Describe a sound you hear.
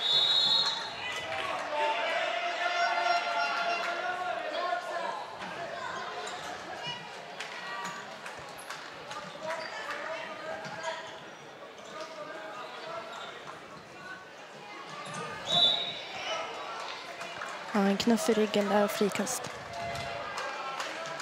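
Young players shout and call out across an echoing hall.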